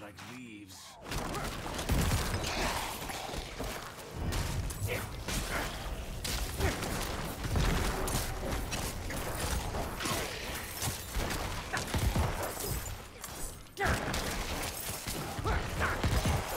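Game combat sounds crash and clash with spells and hits.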